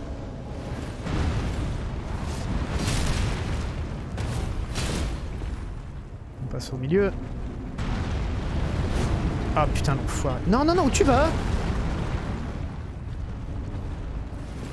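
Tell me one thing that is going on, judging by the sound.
A giant creature's heavy blows thud and crash.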